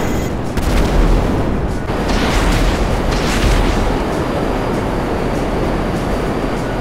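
Jet engines roar loudly and steadily.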